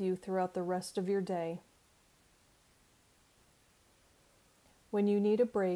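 A middle-aged woman speaks calmly and close to a microphone, with pauses.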